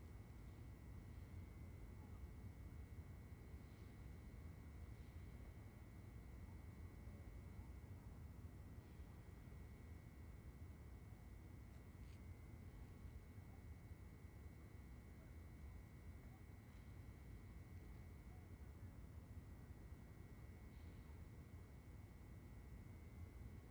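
Low rumbling ambience drones steadily.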